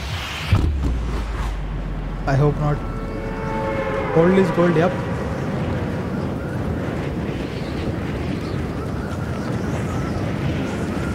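Wind rushes steadily past a game character falling through the air.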